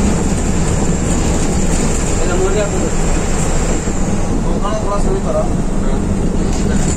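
A bus engine drones steadily from inside the bus.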